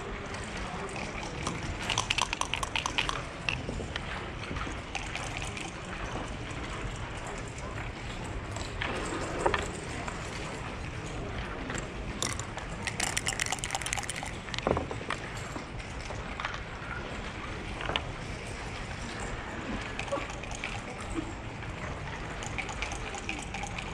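Backgammon checkers click as they are moved on the board.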